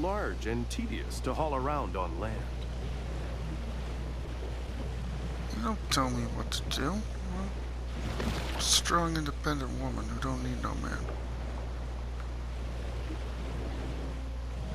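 Water splashes softly as a swimmer paddles through it.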